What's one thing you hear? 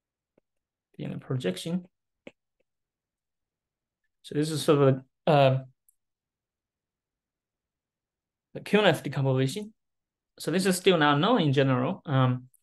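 A man lectures calmly in short phrases through an online call.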